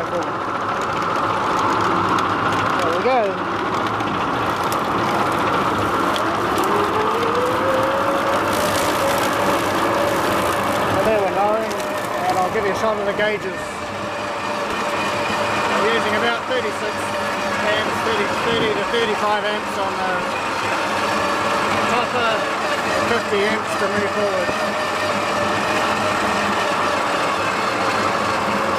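A ride-on mower's motor hums steadily as its blades whir through grass.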